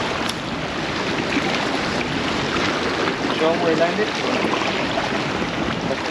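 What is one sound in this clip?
Small waves splash against rocks.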